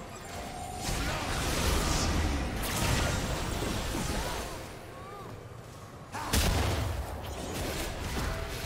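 Magic blasts and sword hits crackle and thump in a fast fight.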